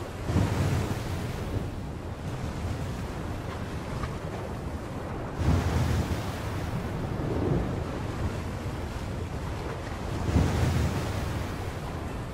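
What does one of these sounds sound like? Wind roars steadily outdoors.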